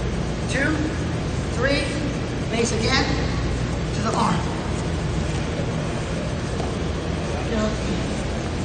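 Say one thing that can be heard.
Two wrestlers thump and scuffle on a mat.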